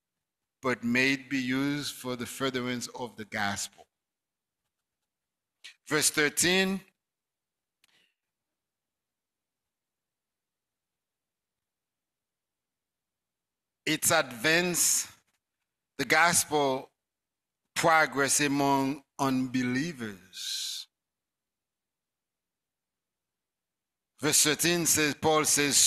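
A man preaches into a microphone in bursts with long pauses.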